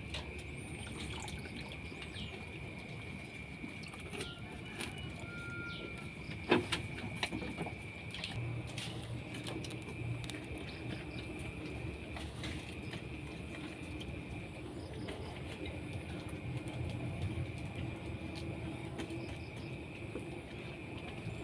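A goat slurps and laps liquid from a bucket.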